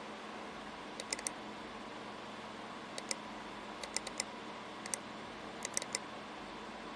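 Short interface clicks sound in quick bursts.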